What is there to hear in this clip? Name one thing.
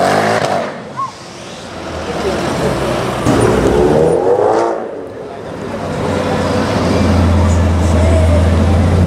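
A supercharged V8 sports sedan revs hard and roars.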